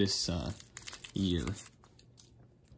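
Foil crinkles as it is peeled open.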